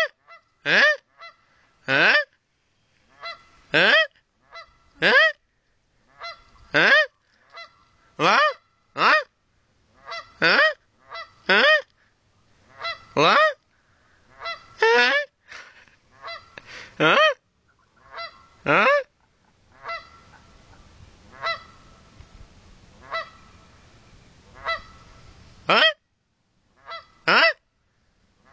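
A swan calls with loud, repeated trumpeting honks.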